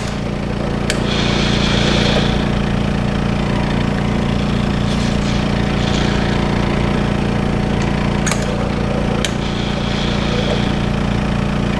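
Liquid hisses and sprays inside a machine.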